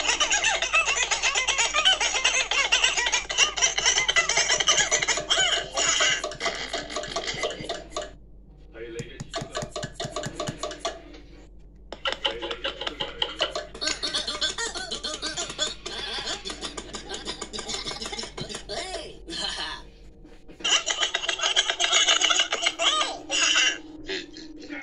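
A tablet game plays chirpy cartoon sounds and music through a small speaker.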